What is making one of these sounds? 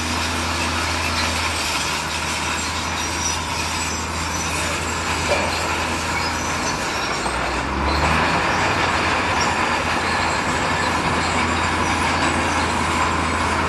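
A truck's diesel engine idles with a low rumble.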